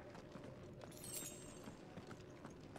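A bright sparkling chime rings out.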